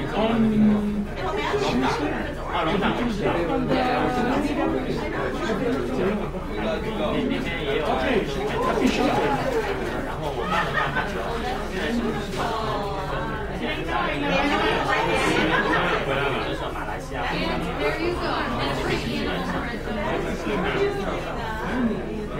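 A crowd of men and women chat at once.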